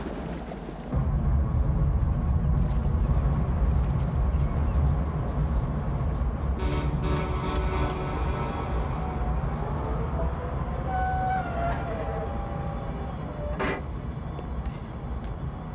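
A tugboat's engine rumbles low and steady.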